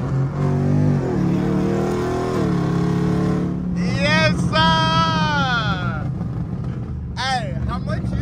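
A powerful car engine roars and revs up through the gears.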